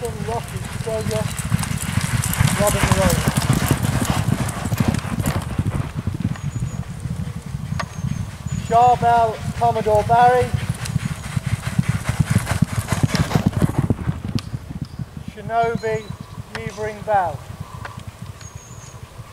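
Horses' hooves pound rhythmically on soft ground as they gallop past.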